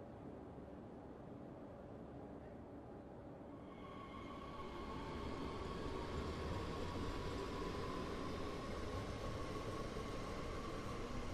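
A train hums steadily from the inside.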